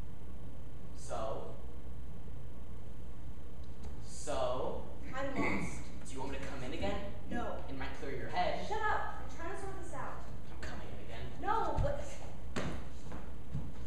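A young woman speaks with feeling in a quiet, slightly echoing room.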